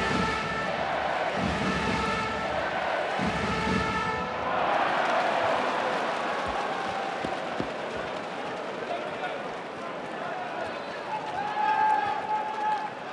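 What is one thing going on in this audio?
A large crowd chants and cheers in a big echoing arena.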